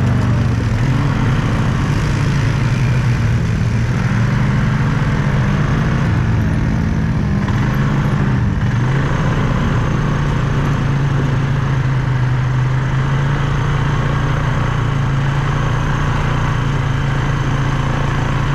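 A quad bike engine drones steadily up close.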